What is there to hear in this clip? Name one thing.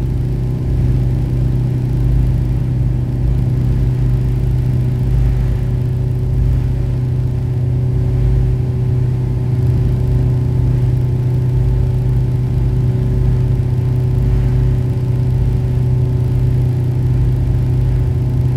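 A ferry's engine drones steadily and loudly.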